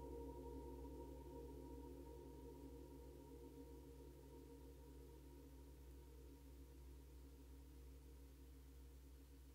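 Electronic music with a steady low drone plays through loudspeakers and slowly fades.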